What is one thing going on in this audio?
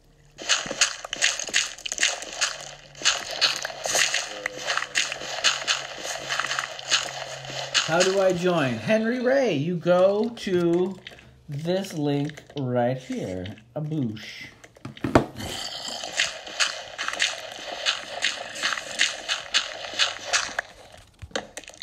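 Rapid scraping taps of stone being dug away with a pick.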